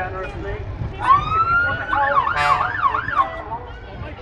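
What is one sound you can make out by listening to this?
A fire engine siren whoops in short rising bursts.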